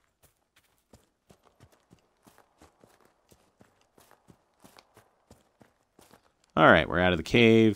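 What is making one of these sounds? Footsteps tread on dirt and gravel.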